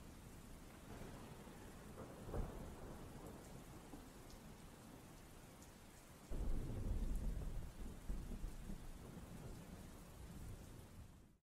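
Raindrops splash into a puddle.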